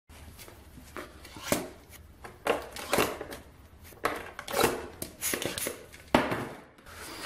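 A hammer taps on a cardboard box.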